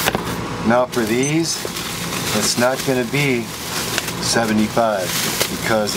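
Plastic bubble wrap crinkles and rustles.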